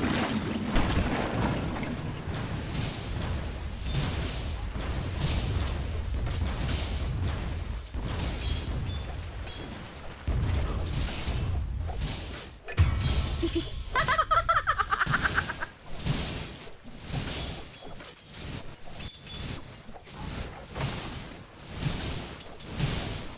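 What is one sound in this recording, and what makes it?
Weapons clash and magic bursts crackle.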